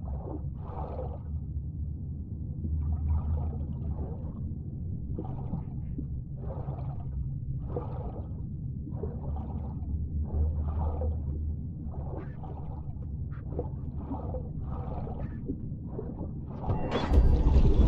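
Water swishes with each swimming stroke underwater.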